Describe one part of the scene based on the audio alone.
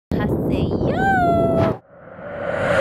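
A young woman greets cheerfully and loudly, close by.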